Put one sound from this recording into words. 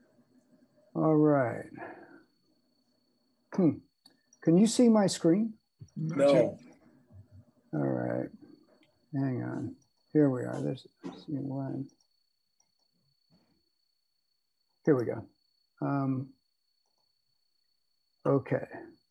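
A middle-aged man speaks calmly in short phrases, heard through an online call.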